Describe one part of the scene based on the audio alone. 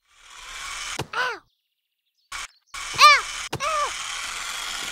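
A small toy car bounces with springy boing sounds.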